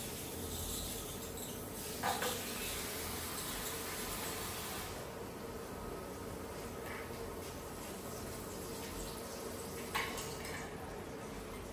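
Water runs and splashes steadily close by.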